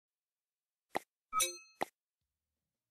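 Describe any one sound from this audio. Short electronic clicks sound as menu buttons are selected.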